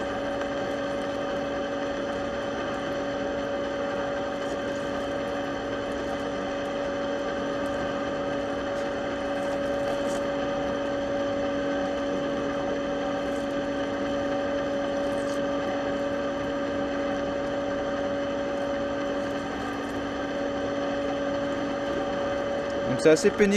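A lathe hums steadily as it turns.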